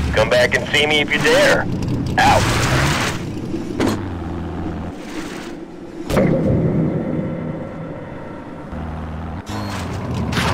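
A buggy engine revs and roars.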